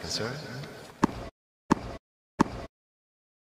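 A tennis ball bounces on a hard court a few times.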